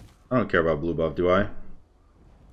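A young man speaks briefly with animation, close to a microphone.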